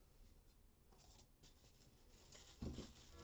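Sandpaper rustles as it is laid on a hard surface.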